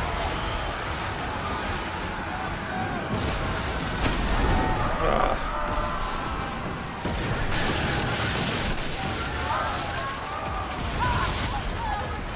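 Waves splash against a ship's hull.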